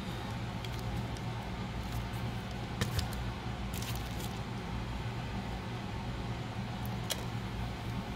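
Small plastic parts click and tap as hands handle a device.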